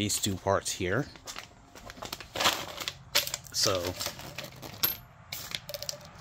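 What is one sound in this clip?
Plastic packaging crinkles in a hand.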